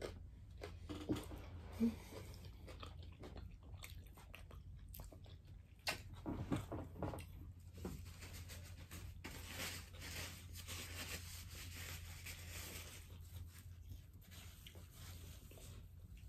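A boy chews food with wet, crunchy sounds.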